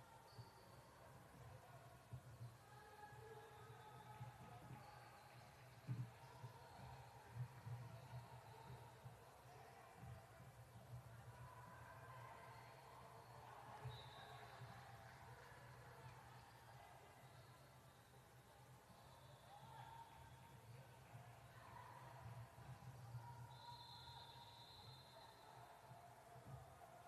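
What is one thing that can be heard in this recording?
Girls and spectators chatter and call out across an echoing gym.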